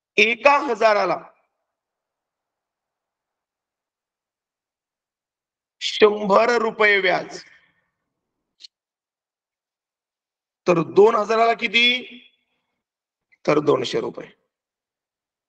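A man speaks calmly in short phrases through an online call, with pauses between them.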